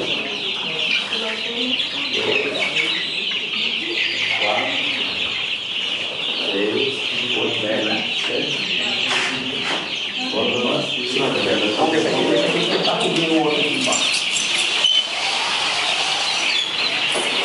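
Many chicks cheep loudly and constantly.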